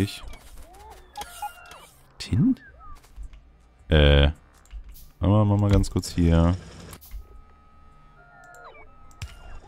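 Short electronic game sound effects chime and blip.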